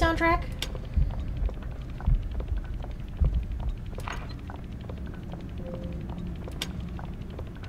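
Metal gears click into place.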